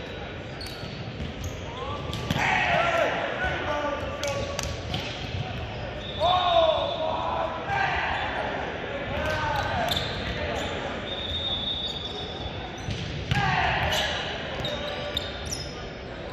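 Young men shout and call out loudly in a large echoing hall.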